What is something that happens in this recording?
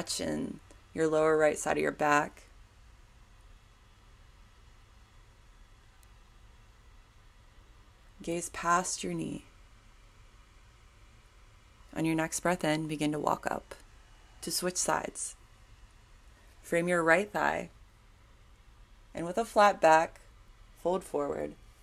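A woman speaks calmly and slowly in short phrases, close by.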